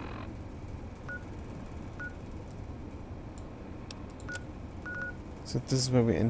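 Short electronic beeps sound as a game's map menu is flipped through.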